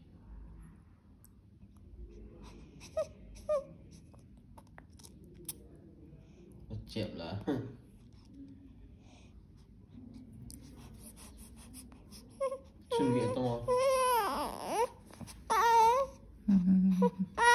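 A newborn baby suckles and swallows softly, close by.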